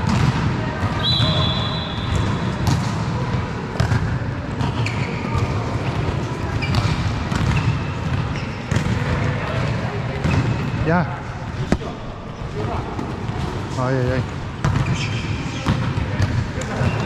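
Shoes squeak on the hall floor.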